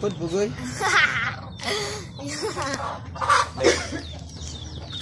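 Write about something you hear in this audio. A young boy laughs loudly and giggles close by.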